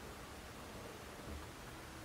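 A small wooden cabinet door opens with a soft knock.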